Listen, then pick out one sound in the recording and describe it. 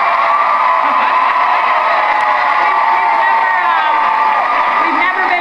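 A large crowd cheers and screams loudly through a television speaker.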